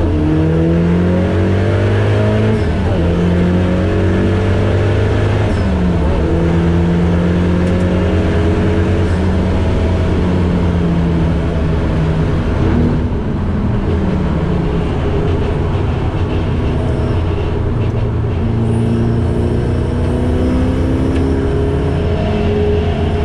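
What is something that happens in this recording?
A car engine roars loudly close by, revving up and down through the gears.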